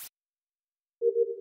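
A short electronic tone sounds.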